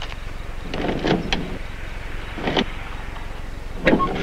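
A car trunk lid clunks open.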